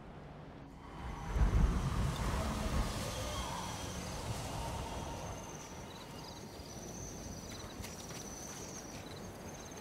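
Wind gusts through tall grass.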